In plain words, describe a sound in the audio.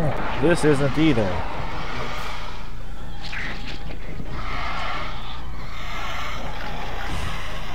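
A monster lets out a deep, rumbling growl.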